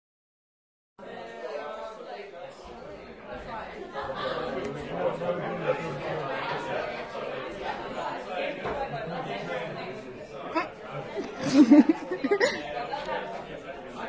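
Two women talk with each other close by.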